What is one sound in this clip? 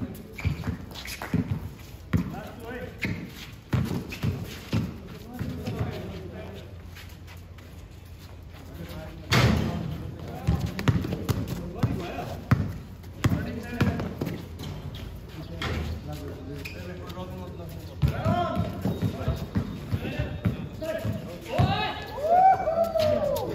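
A basketball bounces on hard ground outdoors.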